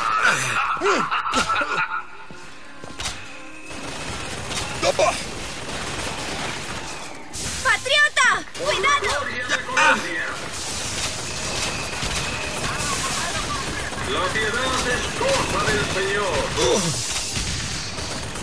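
A gun fires several sharp shots.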